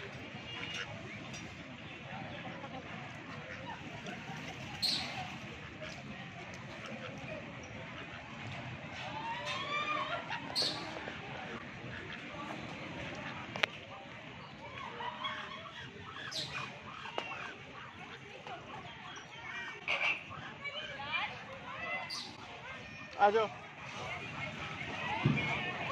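Flamingos wade and feed in shallow water.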